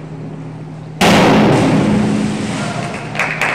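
A diver splashes into the water of an echoing indoor pool.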